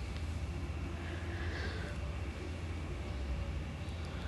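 Cloth rustles softly as hands smooth and fold it.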